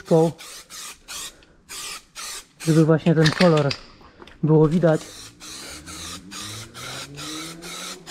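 A spray can hisses in short, repeated bursts.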